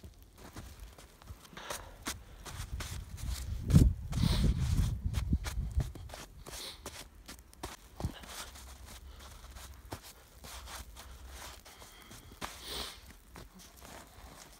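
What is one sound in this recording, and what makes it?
Boots crunch and squeak in deep snow.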